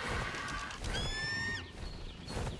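A large bird squawks shrilly.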